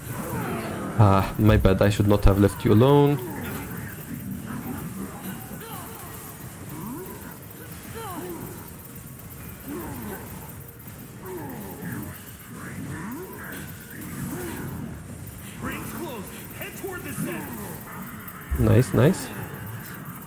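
Loud magical blasts burst out in quick succession.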